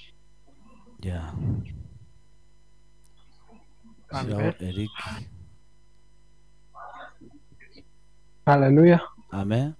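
A man speaks into a microphone with animation.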